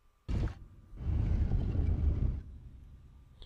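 A heavy stone slab grinds and scrapes as it slides.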